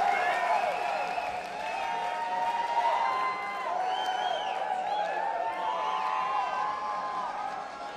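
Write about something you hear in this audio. People in a crowd whistle shrilly.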